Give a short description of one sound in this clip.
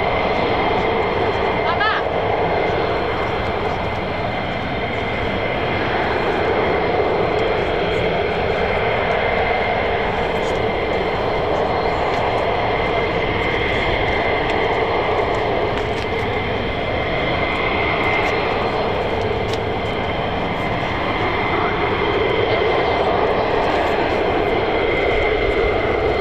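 A jet engine roars steadily at idle nearby, outdoors.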